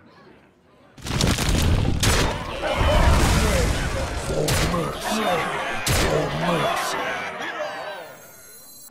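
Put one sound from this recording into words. Game pieces clash with heavy magical bursts and thuds.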